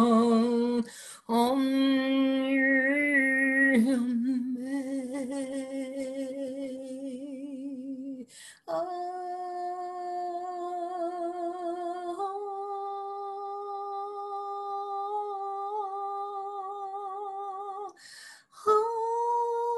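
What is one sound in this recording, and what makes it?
A woman breathes in sharply between notes.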